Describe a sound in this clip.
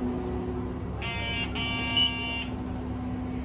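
A card reader beeps as a card is tapped.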